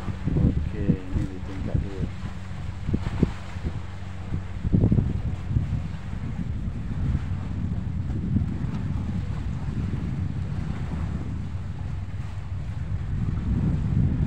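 Sea water laps gently below.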